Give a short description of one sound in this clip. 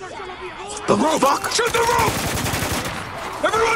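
Gunfire bursts out loudly.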